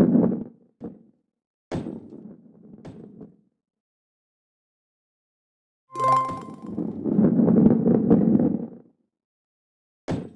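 Stacked blocks crash and scatter.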